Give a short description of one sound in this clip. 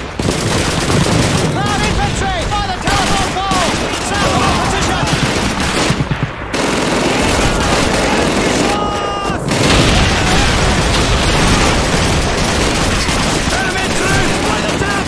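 A heavy machine gun fires in rapid bursts close by.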